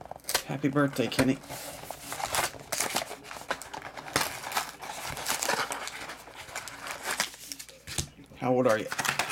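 Cardboard boxes scrape and tap against each other.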